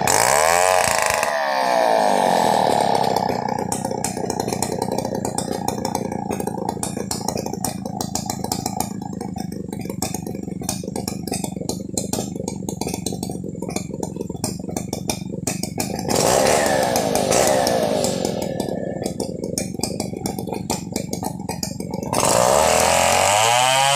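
A chainsaw engine roars loudly, rising and falling as it cuts wood.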